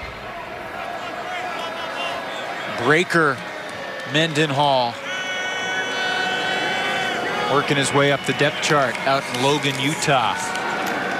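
A crowd cheers steadily in a large open stadium.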